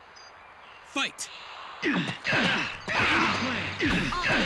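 Weapons clash with sharp hits.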